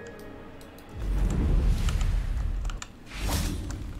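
A swooping rush of air lands with a whoosh.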